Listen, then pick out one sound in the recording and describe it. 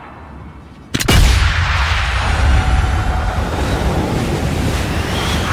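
A bullet whooshes through the air.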